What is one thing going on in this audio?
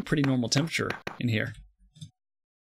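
A man speaks casually, close to a microphone.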